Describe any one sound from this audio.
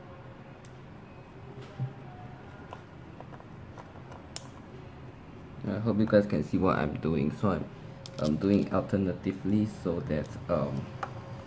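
A small screwdriver scrapes and clicks against a screw.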